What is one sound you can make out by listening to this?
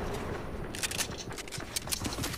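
A gun fires a few sharp shots.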